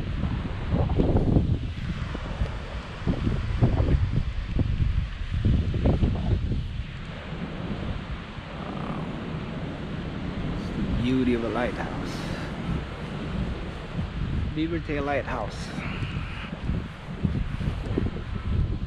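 Wind gusts and rumbles loudly outdoors.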